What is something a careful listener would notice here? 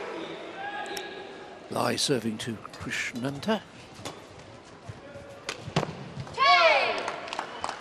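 A shuttlecock is struck with rackets.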